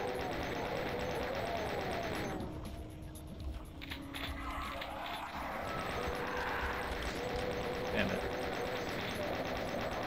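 A rapid-fire gun blasts in quick bursts.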